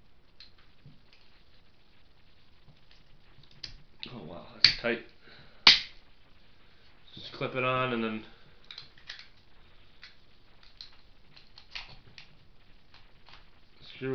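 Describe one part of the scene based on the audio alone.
Small plastic parts click and snap in a young man's hands.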